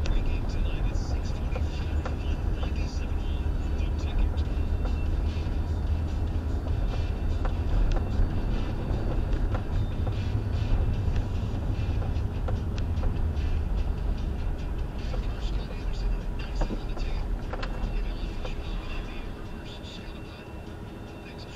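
A car drives along with a low road rumble that fades as it slows to a stop.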